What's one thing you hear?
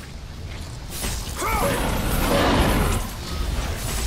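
A huge creature roars loudly.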